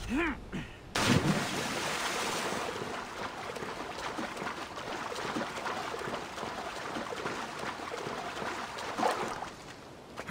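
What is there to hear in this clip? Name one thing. Water splashes as a swimmer strokes through the sea.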